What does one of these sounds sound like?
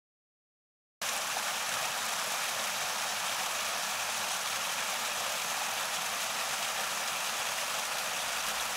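A small waterfall splashes and rushes close by.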